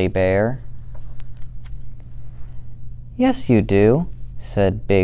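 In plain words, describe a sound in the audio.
A girl reads a story aloud with animation, close to a microphone.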